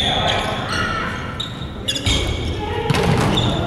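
A volleyball is struck with a dull slap.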